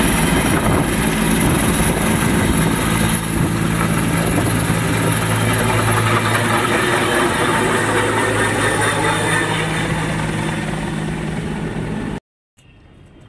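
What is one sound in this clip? A helicopter's rotor thumps loudly overhead with a roaring engine.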